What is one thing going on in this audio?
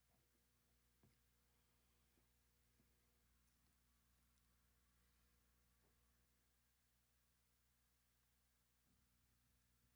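A tortoise's claws scrape and tap softly on a wooden surface.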